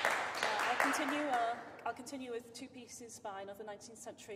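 A young woman speaks calmly and cheerfully close by.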